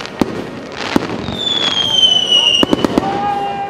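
A firework rocket whistles shrilly as it climbs.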